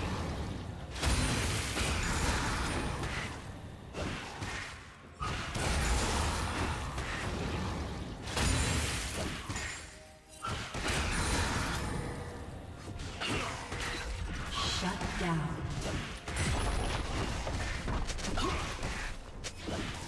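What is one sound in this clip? Magic spells crackle and blows clash in a busy battle.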